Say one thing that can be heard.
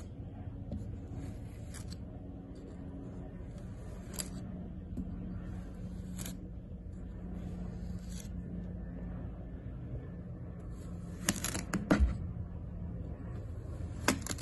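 A knife blade slices softly through kinetic sand.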